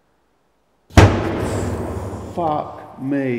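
A loud bang echoes down a hard corridor.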